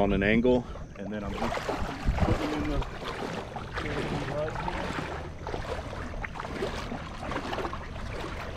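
Water splashes as a man wades through it.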